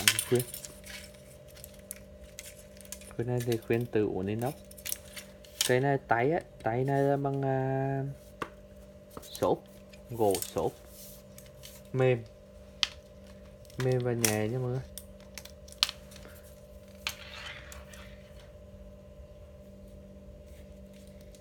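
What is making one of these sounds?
Fishing rod sections knock and rattle softly as hands handle them.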